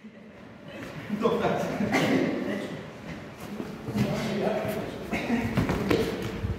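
Teenage boys grapple and fall with thuds onto a mat.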